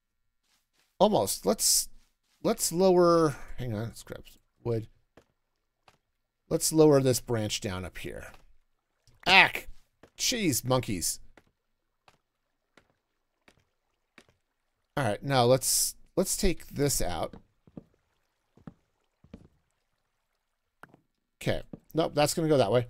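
A middle-aged man talks with animation into a close microphone, in bursts with pauses.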